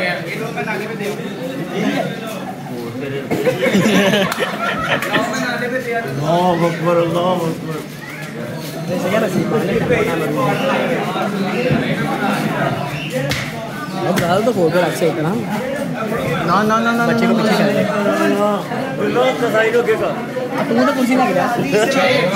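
Several men talk and call out loudly nearby, outdoors.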